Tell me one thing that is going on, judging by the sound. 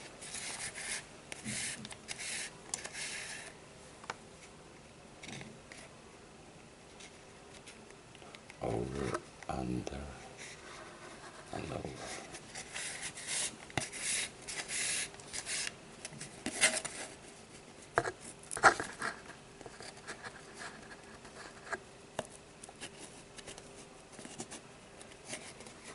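Cord rustles and scrapes against a cardboard tube as it is wound and knotted.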